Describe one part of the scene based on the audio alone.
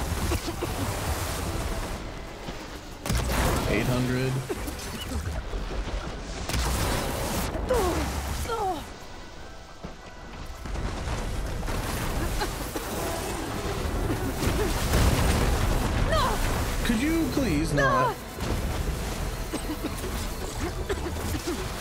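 Explosions and blasts rumble loudly.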